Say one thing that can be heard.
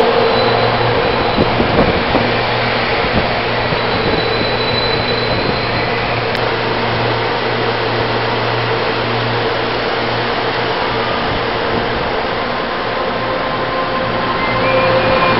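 A stopped electric train hums steadily close by.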